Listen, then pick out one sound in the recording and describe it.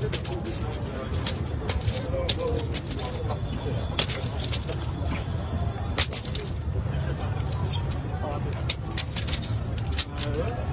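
A crowd of young men and women chatters nearby.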